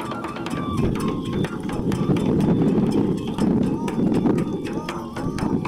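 A large drum beats in a quick, steady rhythm.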